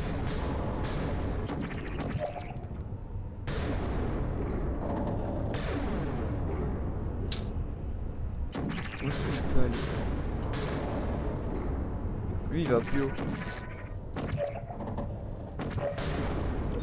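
A sci-fi energy gun fires short, sharp electronic zaps.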